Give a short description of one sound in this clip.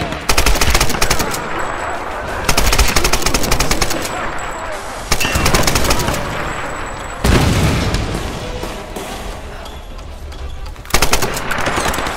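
A rifle fires in rapid bursts in a large echoing hall.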